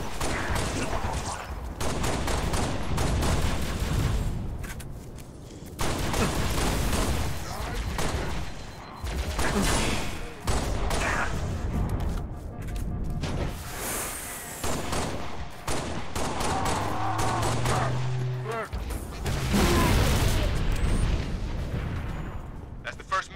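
Gunshots crack repeatedly in quick bursts.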